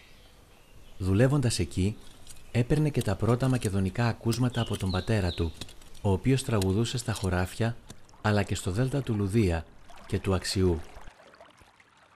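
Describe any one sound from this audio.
An elderly man speaks calmly and slowly.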